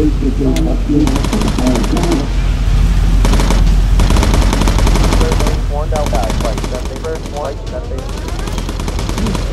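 Machine guns fire in rapid bursts.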